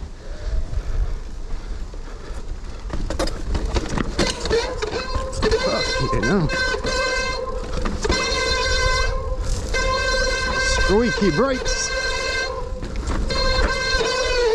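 Knobby tyres rumble and crunch over a rough dirt trail.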